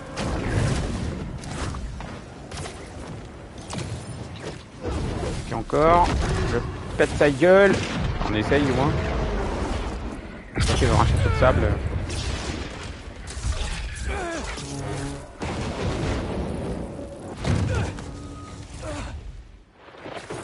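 Strong wind howls and blows sand.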